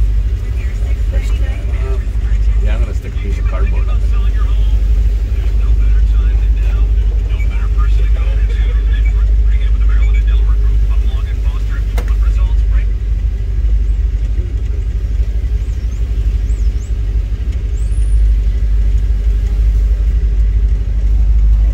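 A car engine hums low and steadily while the car rolls slowly along.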